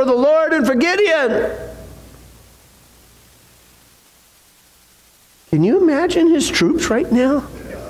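A middle-aged man preaches with animation through a microphone.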